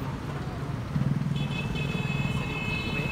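A car drives past.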